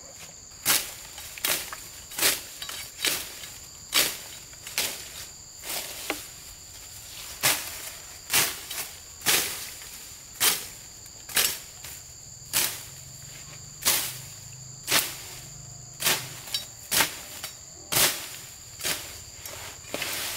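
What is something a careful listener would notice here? Fern stems snap and leaves rustle as they are pulled up by hand.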